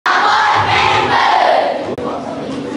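Children chatter and call out close by.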